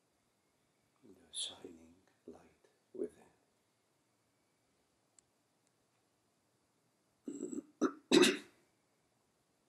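A middle-aged man speaks briefly and calmly nearby.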